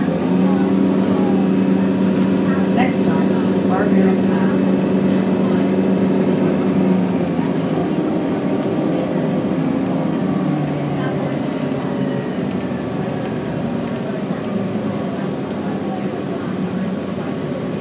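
A bus engine hums steadily from inside as the bus drives along.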